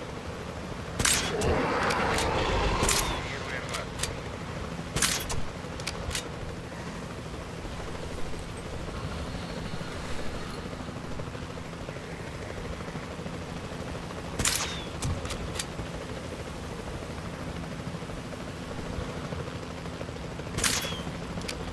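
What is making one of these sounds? A tranquilizer dart rifle fires.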